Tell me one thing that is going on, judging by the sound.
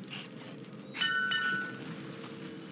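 A short, bright electronic chime rings.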